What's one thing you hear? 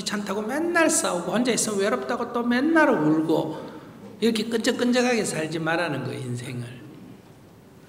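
An elderly man speaks calmly through a microphone in a large echoing hall.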